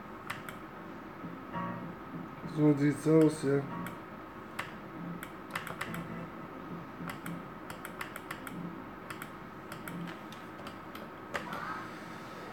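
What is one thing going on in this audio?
A slot machine clicks as its reels spin.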